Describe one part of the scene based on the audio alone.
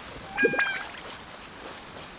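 Footsteps run over wet ground.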